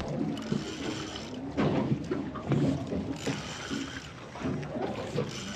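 Water splashes as a fish thrashes at the surface close by.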